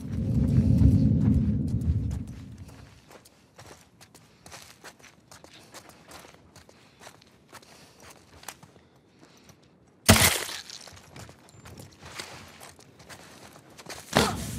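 Soft footsteps creep slowly over a hard floor.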